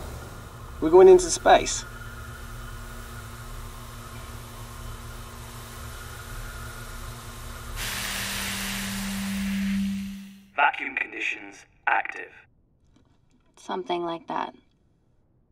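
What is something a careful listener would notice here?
A man speaks calmly, muffled inside a helmet.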